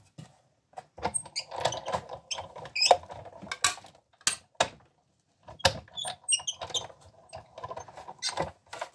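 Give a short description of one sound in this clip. A die-cutting machine's crank turns, rolling plates through with a grinding rumble.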